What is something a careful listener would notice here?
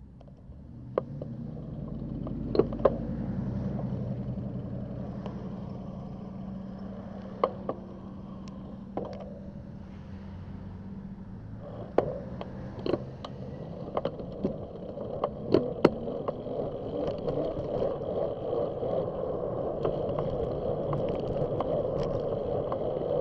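A bicycle rattles over bumps in the road.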